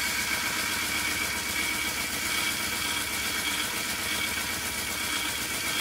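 Metal grinds against a running sanding belt with a harsh rasp.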